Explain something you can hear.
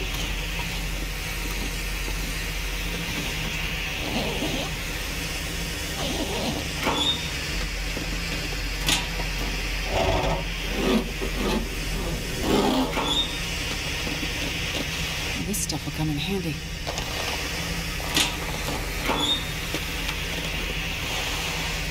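A burning flare hisses steadily.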